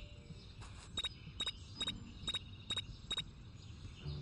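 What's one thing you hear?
Quick footsteps thud on grass.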